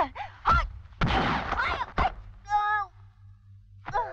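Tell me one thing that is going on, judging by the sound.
A young woman cries out in pain.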